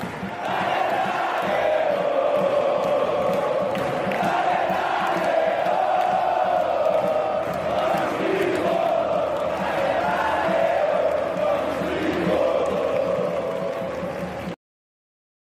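A large stadium crowd chants and sings loudly in unison.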